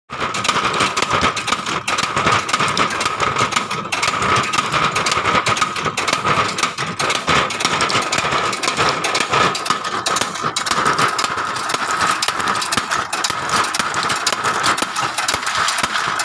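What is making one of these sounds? Nuts clatter and crack in a metal shelling machine.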